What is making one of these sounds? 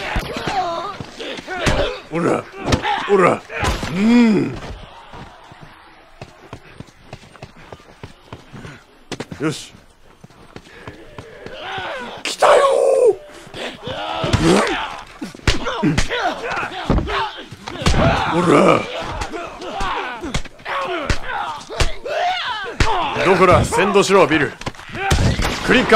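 Fists thud in heavy punches during a scuffle.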